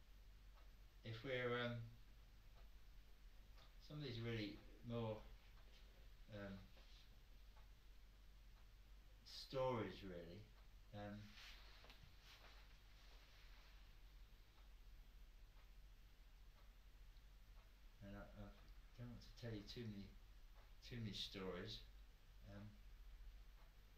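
A middle-aged man reads aloud slowly, with long pauses.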